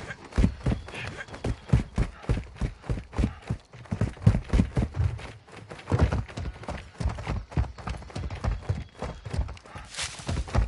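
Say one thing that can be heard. Footsteps thud quickly and steadily on dirt and rock.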